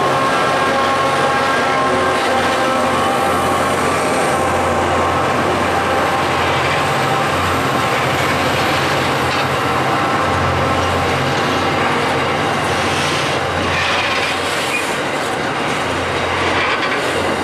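Loaded coal wagons clatter and squeal over the rails.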